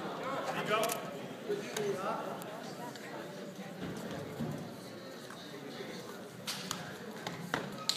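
People in a crowd call out and cheer in a gym with a lot of echo.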